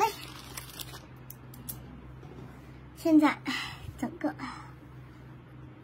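Cloth rustles as it is moved and smoothed by hand.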